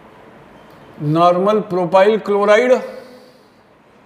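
An elderly man speaks briefly in a lecturing tone, close by.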